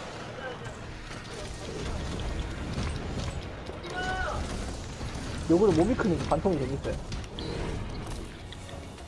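A huge monster roars loudly.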